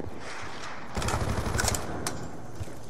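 A burst of rapid gunfire rattles loudly.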